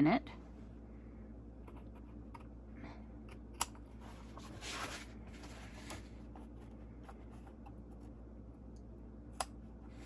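Scissors snip through thick fabric.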